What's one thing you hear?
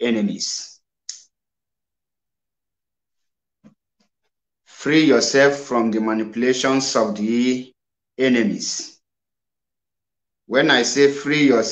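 A man speaks calmly and close to a microphone, in pauses.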